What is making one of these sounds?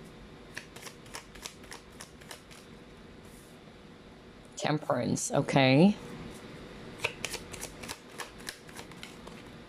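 Playing cards tap and rustle in hands.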